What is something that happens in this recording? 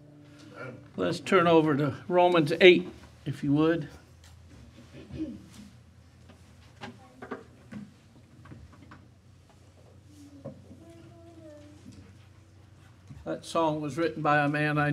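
An elderly man speaks loudly into a microphone.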